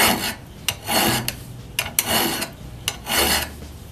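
A mallet taps a chisel.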